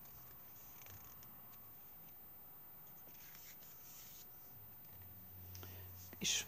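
Paper cards rustle and slide against each other.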